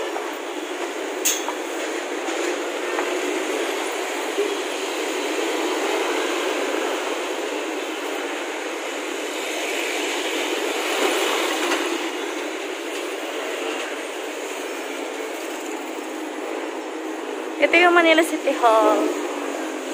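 Traffic rumbles past steadily on a busy road outdoors.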